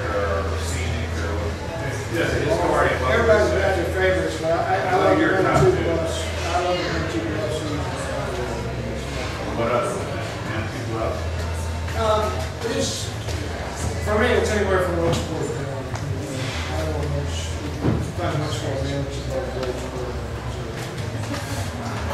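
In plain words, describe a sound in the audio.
A man speaks to a small audience, heard from across the room.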